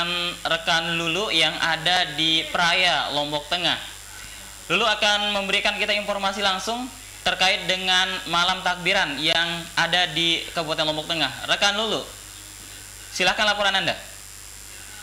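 A man speaks calmly and clearly into a microphone.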